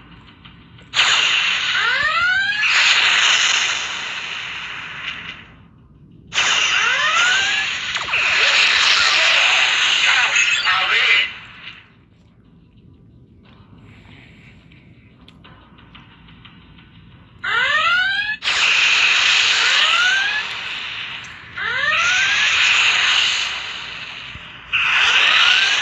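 Laser blasts fire in loud bursts with quick rising chirps.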